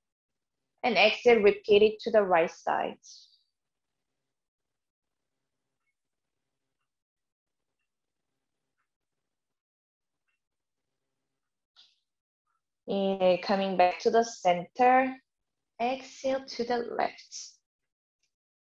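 A young woman speaks calmly and softly close to the microphone.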